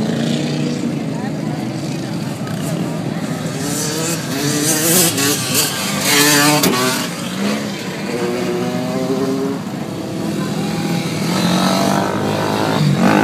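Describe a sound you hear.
Off-road buggy and quad engines rev and roar nearby, outdoors.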